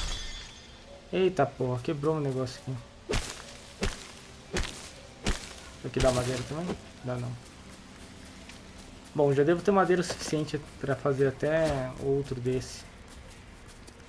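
Footsteps patter across grass.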